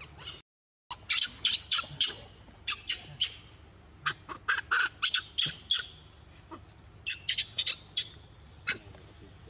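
Dry leaves rustle and crunch as monkeys move about.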